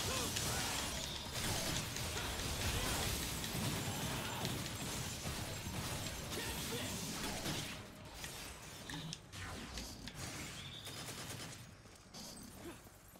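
Blades slash and clang in a rapid fight.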